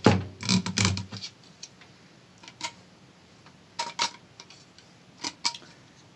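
Pliers click and scrape against metal.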